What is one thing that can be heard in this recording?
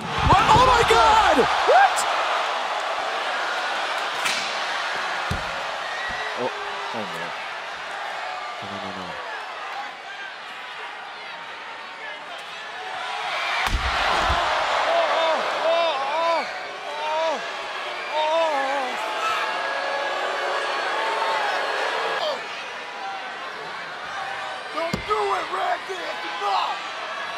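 A large crowd cheers and roars in a big echoing hall.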